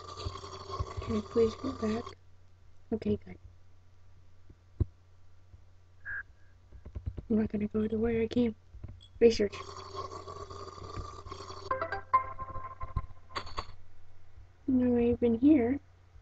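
A boy talks close to a microphone with animation.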